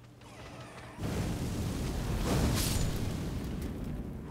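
A giant rat screeches and snarls up close.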